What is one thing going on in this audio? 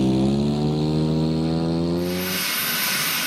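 A small propeller engine buzzes steadily.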